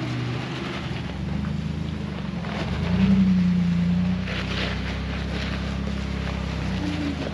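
A second engine growls louder as another truck climbs over rocks.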